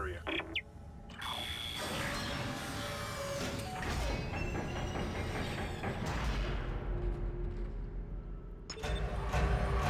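A heavy round door turns and grinds open with a low mechanical rumble.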